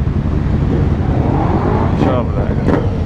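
A motorcycle engine revs up sharply.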